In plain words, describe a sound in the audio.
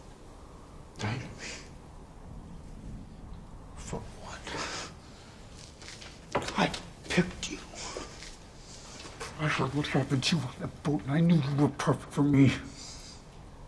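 A man speaks tensely and quietly, close by.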